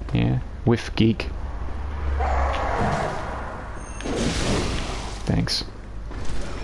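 A heavy blade swings and strikes flesh with wet thuds.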